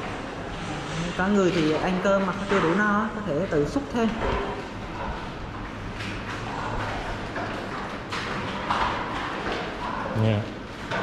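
Men murmur and chatter in a large echoing hall.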